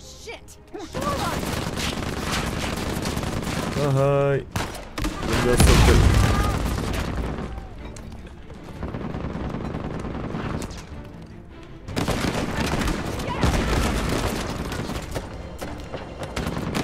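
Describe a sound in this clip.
Rifle shots fire in rapid bursts.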